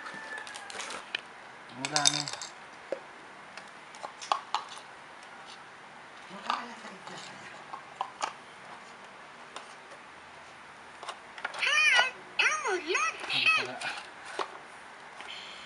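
Plastic toy parts click and clatter.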